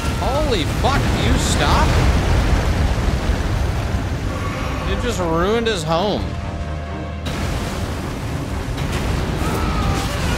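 Water splashes as something heavy lands.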